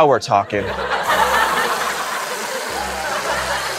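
Whipped cream hisses out of a spray can.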